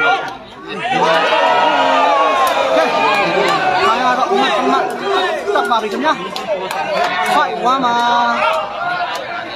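A large crowd outdoors cheers and shouts loudly.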